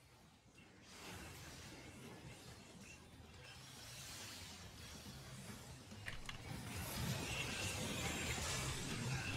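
Crackling magic blasts and electric zaps ring out loudly.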